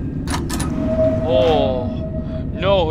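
A door creaks as it swings open.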